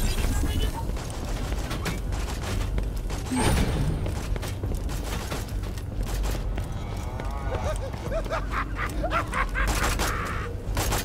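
Heavy footsteps clank on metal ground.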